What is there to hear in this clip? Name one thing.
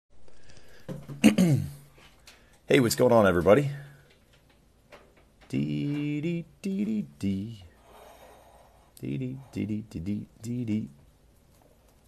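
A young man talks with animation close to a phone microphone.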